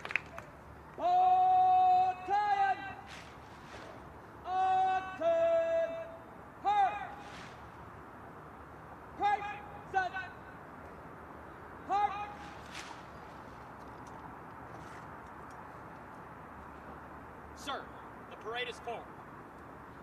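A man shouts drawn-out commands loudly outdoors.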